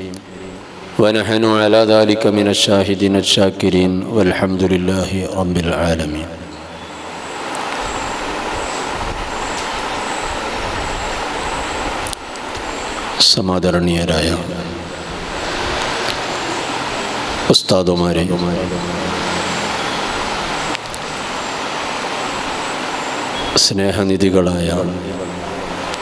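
A man speaks loudly and forcefully into a microphone, heard through loudspeakers with long pauses.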